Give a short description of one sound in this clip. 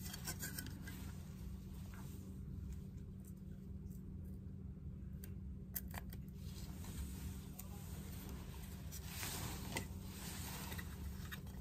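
A plastic shell clicks and taps as hands handle it.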